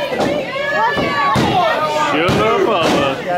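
A body slams onto a wrestling mat with a loud thud.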